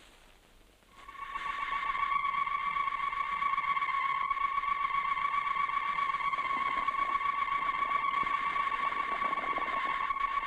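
A machine hums with a steady high whine.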